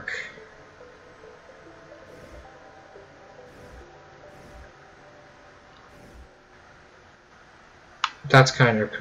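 Soft, gentle electronic music plays quietly.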